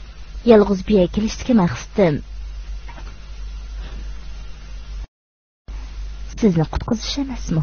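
A young woman speaks with feeling, close by.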